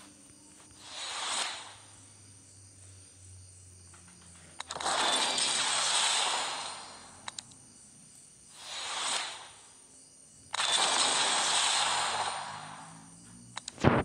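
Game sound effects whoosh and swell as card packs open.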